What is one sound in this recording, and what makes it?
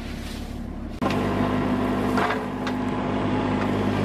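An excavator engine runs steadily.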